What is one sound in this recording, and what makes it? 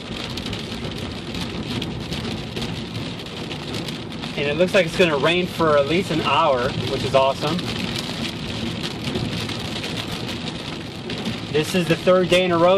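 Rain patters on a car's windshield.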